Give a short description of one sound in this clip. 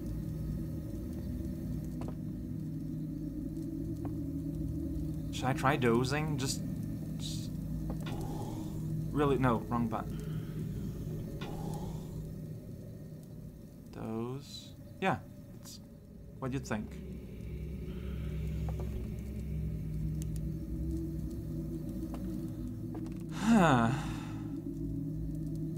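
A campfire burns with a soft, low roar.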